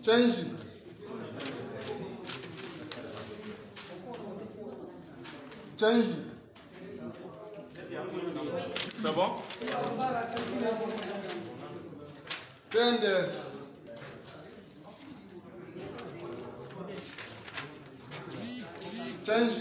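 Several men talk loudly nearby, their voices overlapping.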